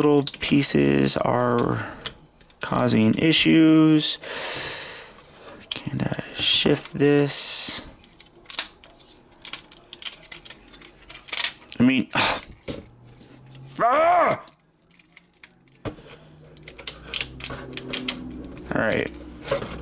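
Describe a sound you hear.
Small plastic parts of a toy click and snap as they are moved by hand.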